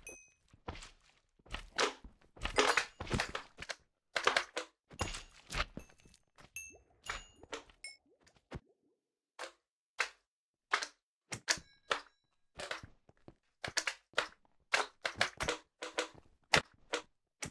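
Slimes squelch and splat as they bounce and get hit.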